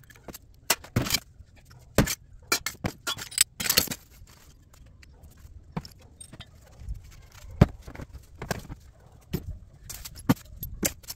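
Metal scraps clink and rattle.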